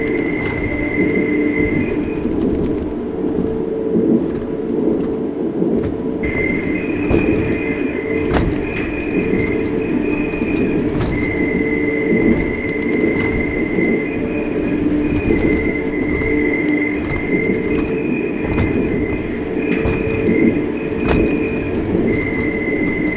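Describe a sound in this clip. A suspended train rumbles and whines steadily along its track.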